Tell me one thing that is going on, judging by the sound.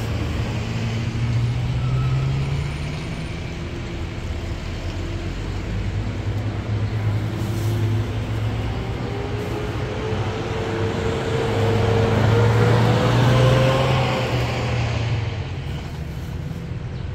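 Outdoors, a steady hum and murmur fill the background.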